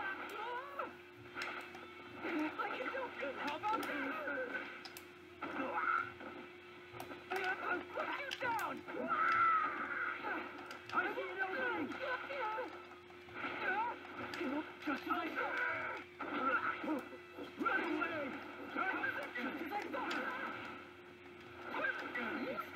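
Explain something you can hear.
Fighting game punches and blasts crack and thud through a small speaker.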